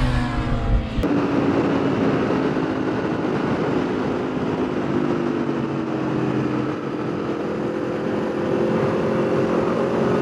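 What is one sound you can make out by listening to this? A motorcycle engine drones steadily at high speed.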